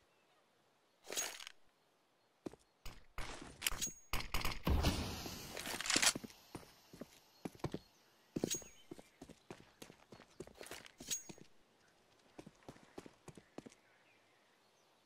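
Footsteps patter quickly on hard stone.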